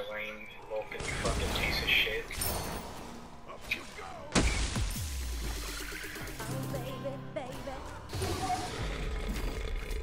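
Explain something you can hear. Game sound effects of magic attacks crackle and burst.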